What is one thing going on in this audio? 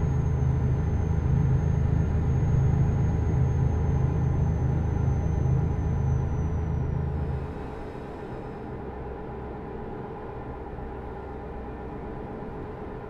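A truck engine drones steadily, then drops to a quieter hum.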